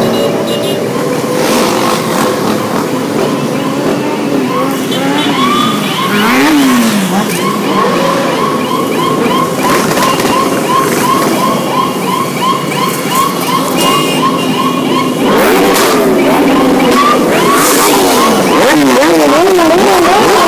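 Many motorcycle engines rumble and rev as riders pass close by.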